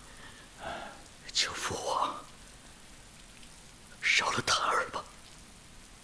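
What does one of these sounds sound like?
A young man speaks with strained, pleading emotion close by.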